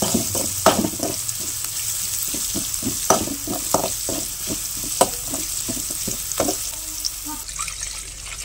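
Vegetables sizzle loudly in hot oil.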